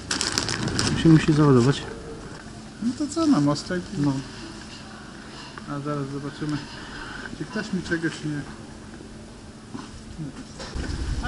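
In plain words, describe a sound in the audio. Middle-aged men talk with each other close by.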